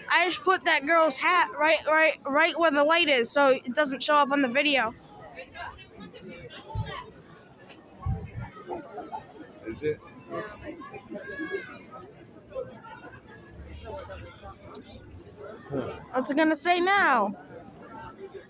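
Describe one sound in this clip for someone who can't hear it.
A young child shouts and sings excitedly close by.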